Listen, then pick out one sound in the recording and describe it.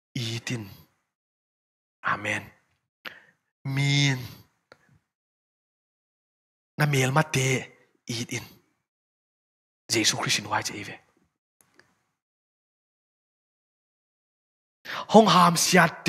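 A young man preaches with animation into a microphone, in bursts with pauses.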